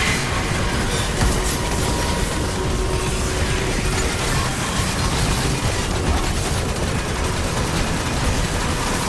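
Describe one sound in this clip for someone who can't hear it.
Electric beams crackle and buzz loudly.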